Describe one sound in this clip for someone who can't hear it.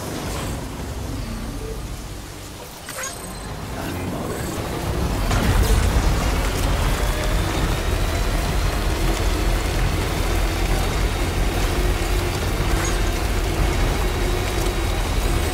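A truck engine rumbles steadily as it drives over rough ground.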